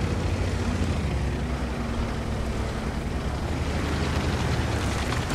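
A tank engine rumbles steadily as the tank rolls along.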